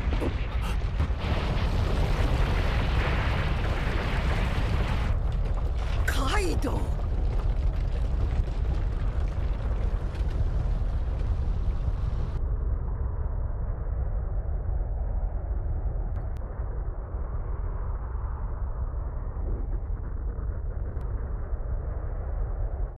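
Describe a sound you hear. A deep rumble of crashing earth rolls on.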